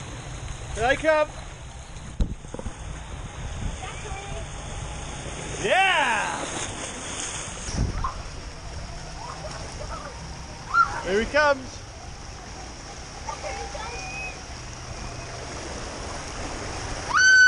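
Water rushes and splashes down a slide nearby.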